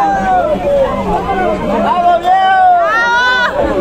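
A woman shouts angrily up close.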